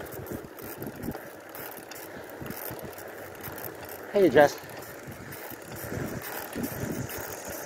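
Bicycle tyres roll steadily over pavement.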